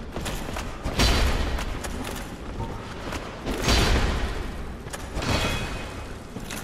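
Sword blows clang and thud against a creature.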